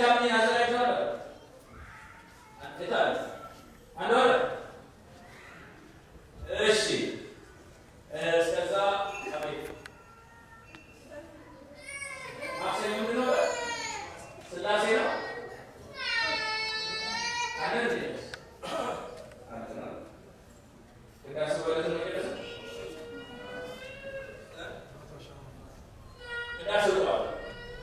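A man speaks with animation into a microphone, heard over loudspeakers in an echoing hall.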